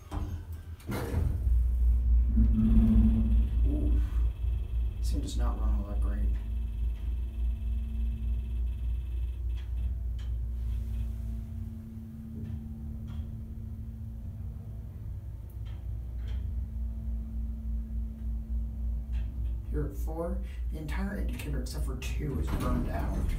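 A hydraulic elevator's pump motor hums as the car travels.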